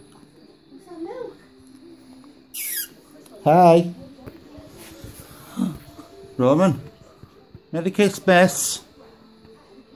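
A baby squeals and babbles close by.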